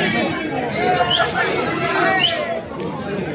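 Men whistle sharply from the crowd.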